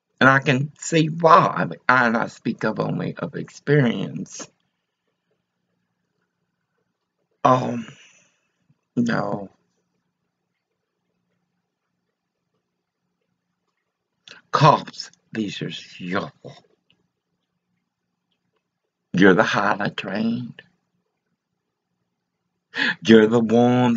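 An elderly woman speaks calmly and close up, with long pauses.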